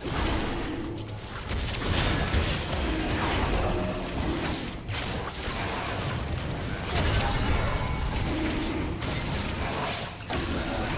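Magic blasts whoosh and crash in a fast fight.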